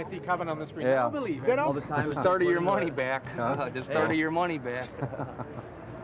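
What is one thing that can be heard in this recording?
An older man speaks and laughs nearby.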